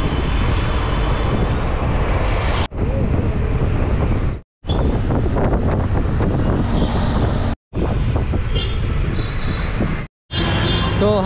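A bus engine rumbles loudly as it drives along a road.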